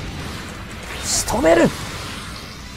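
A beam weapon fires with a sharp burst.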